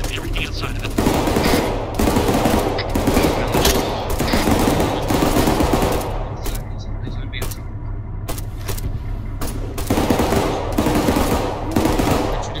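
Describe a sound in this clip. A machine gun fires long, rapid bursts close by.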